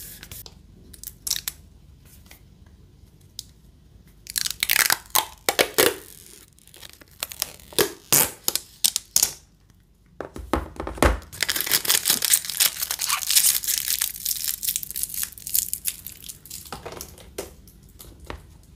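A plastic phone case creaks and clicks as fingers bend and press it.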